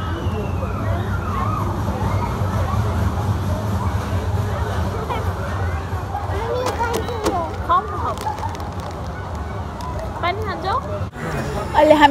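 A young woman talks playfully to a small child close by.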